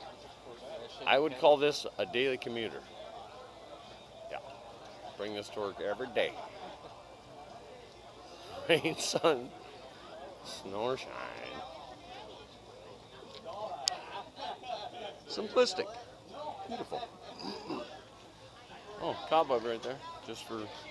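A man talks casually close by, outdoors.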